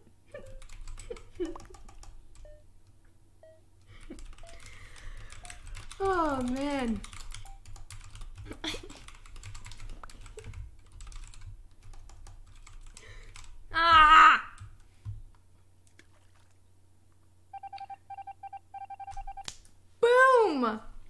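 Two young girls talk and laugh with animation close to a microphone.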